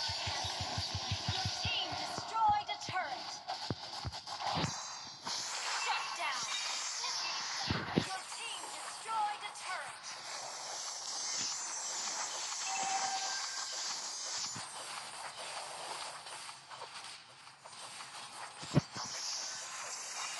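Rapid magical zaps and clashing strikes crackle throughout a fast battle.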